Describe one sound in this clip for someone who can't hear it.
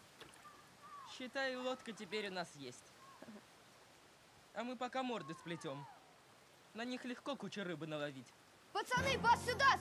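Another young boy answers in a quiet voice nearby.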